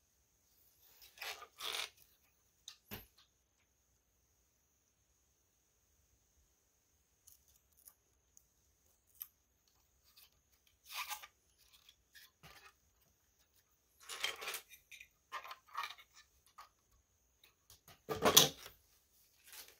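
Plastic toy bricks click and rattle as hands handle them.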